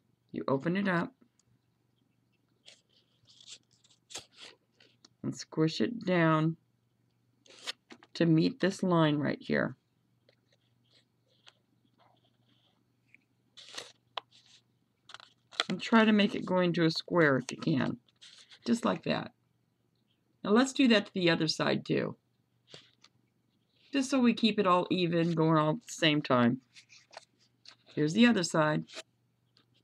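Paper rustles and creases softly as it is folded.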